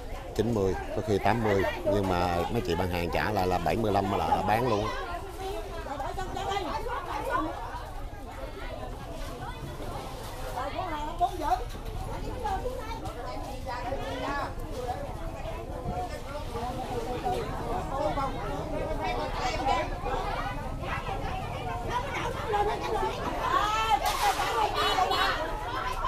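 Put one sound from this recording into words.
A crowd of women chatter and call out all around.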